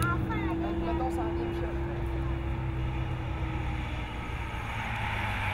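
A motorcycle engine hums steadily nearby, then fades.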